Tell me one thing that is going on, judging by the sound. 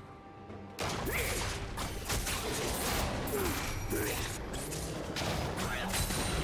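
Magic spells crackle and burst in a fast video game fight.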